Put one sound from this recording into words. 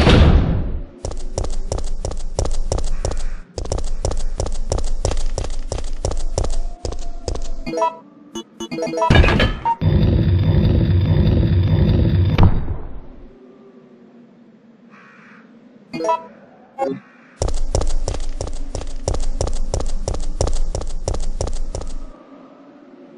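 Footsteps tap quickly and evenly on stone.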